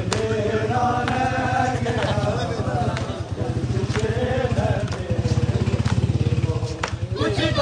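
Men beat their chests in a fast, steady rhythm.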